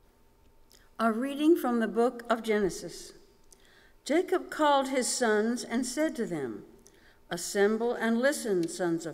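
An elderly woman reads out calmly through a microphone in a large echoing hall.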